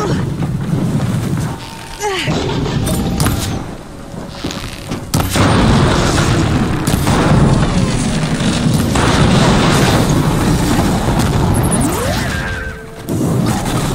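A large robotic beast clanks and stomps nearby.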